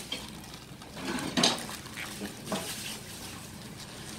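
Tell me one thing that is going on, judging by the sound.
Wet vegetables squelch as gloved hands mix them.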